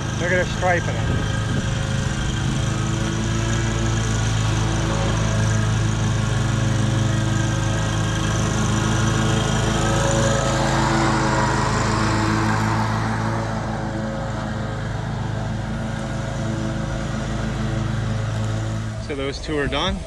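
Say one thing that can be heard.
A lawn mower engine drones steadily nearby.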